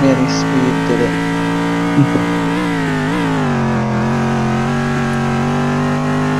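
A racing car engine roars steadily at high revs, dipping briefly and rising again.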